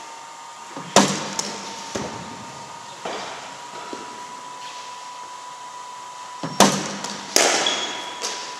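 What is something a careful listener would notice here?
A cricket bat strikes a ball with sharp cracks.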